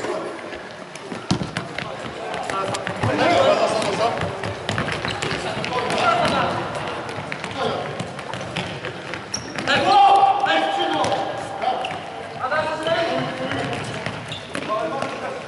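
A ball thuds on a wooden floor as players kick it.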